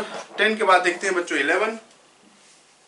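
A man speaks clearly and close to a microphone.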